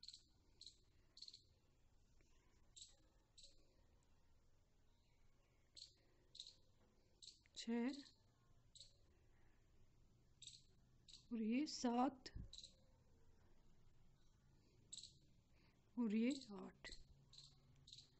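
A crochet hook softly pulls yarn through loops.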